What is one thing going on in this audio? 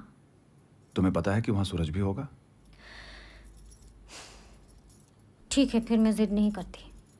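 A young woman speaks quietly.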